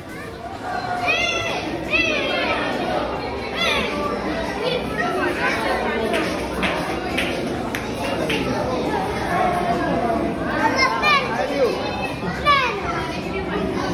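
Young children squeal and shriek with excitement.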